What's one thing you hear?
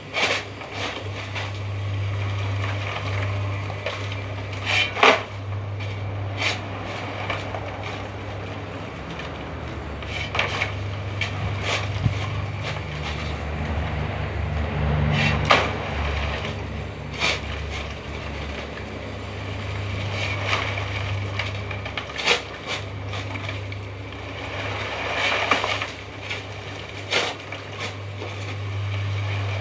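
A cement mixer's motor hums steadily.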